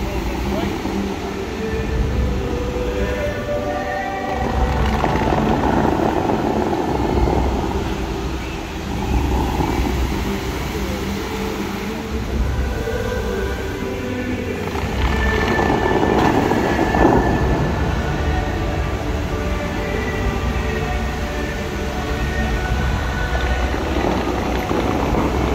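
Fountain jets hiss and splash loudly outdoors.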